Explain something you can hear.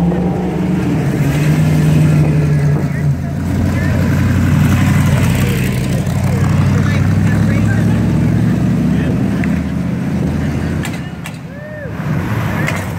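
Classic car engines rumble loudly as cars drive by one after another.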